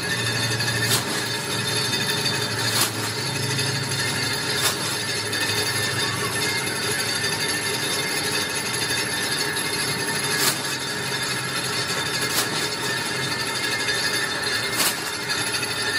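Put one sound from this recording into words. A metal press punches sheet metal with sharp thuds.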